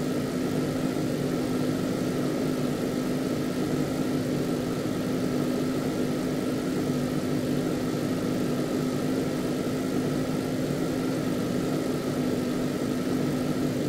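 A truck engine drones steadily at a constant pitch.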